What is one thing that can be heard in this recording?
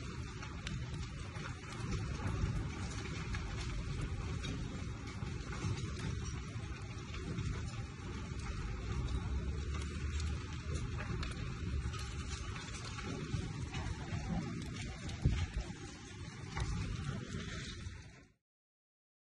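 Flames roar and crackle from a large fire.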